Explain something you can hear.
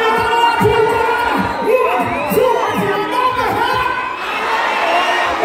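Loud music with a heavy beat plays through loudspeakers.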